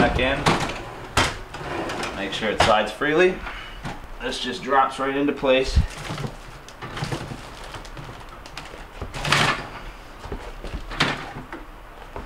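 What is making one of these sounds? A wire basket rattles as it slides in a drawer.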